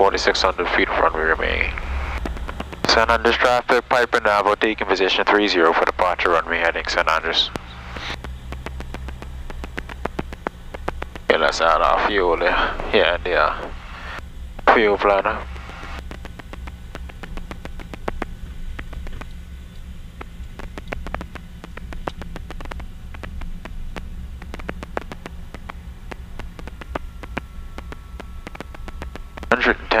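A propeller aircraft engine drones steadily with a low hum.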